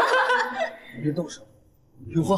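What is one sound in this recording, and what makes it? A young man laughs loudly, close by.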